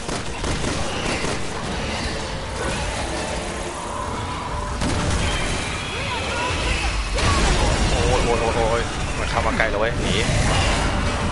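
A man talks close to a microphone with animation.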